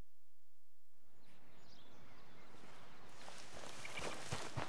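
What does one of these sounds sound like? Wind blows softly outdoors through grass.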